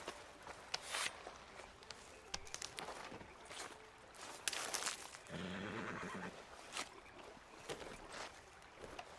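Footsteps rustle and crunch through dry brush.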